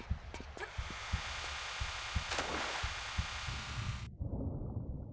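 Water rushes and swirls loudly.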